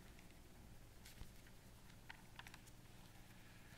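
Paper rustles and crackles close by.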